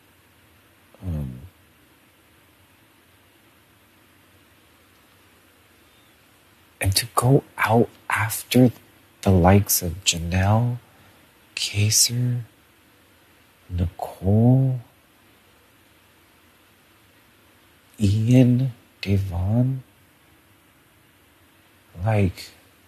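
A man speaks with animation close by, in short bursts with pauses.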